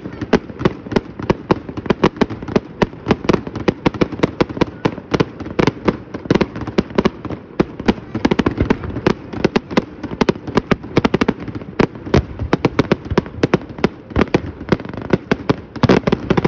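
Fireworks burst and boom over water.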